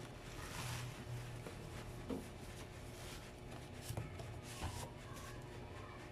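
A cardboard carton scrapes and taps as it is handled.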